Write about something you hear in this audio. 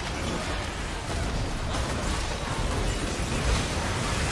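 Magic spells crackle and burst in a fast fantasy battle.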